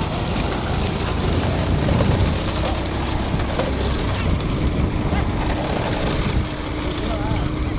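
Hooves clatter on a paved road as bulls pull carts.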